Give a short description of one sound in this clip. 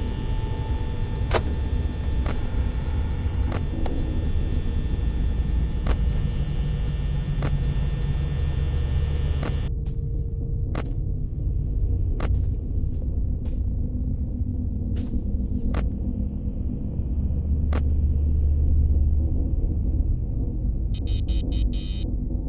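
Static hisses and crackles steadily.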